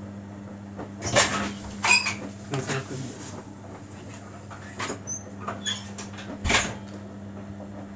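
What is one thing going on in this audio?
Wet laundry tumbles and thumps inside a washing machine drum.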